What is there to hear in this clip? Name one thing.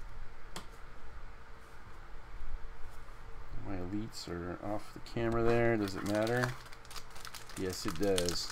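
Playing cards slide and tap softly on a mat.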